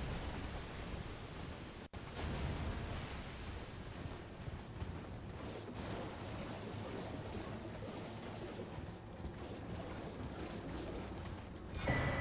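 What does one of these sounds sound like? Horse hooves gallop steadily over soft ground.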